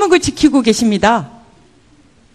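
A middle-aged woman speaks firmly into a microphone, then falls silent.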